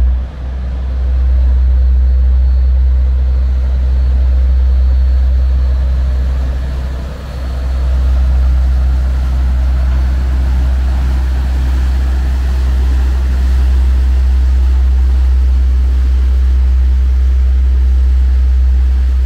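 Water churns and rushes in a barge's wake.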